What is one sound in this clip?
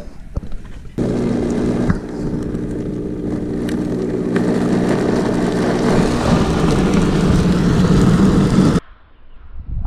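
A blender whirs loudly and steadily.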